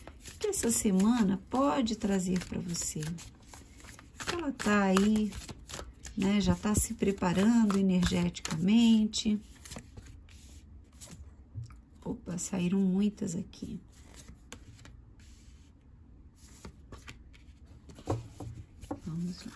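Playing cards riffle and slap together as a deck is shuffled by hand.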